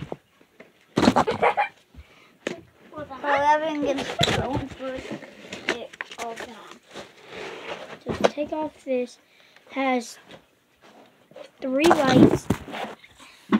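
Plastic knocks and thumps against plastic.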